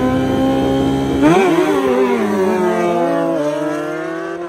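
Motorcycle engines rev loudly and roar off at full throttle.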